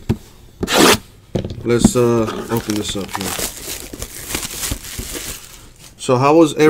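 Plastic wrapping crinkles and rustles under handling hands.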